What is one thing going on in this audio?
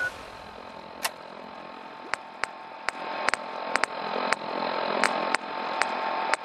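Game menu selections tick with short clicks.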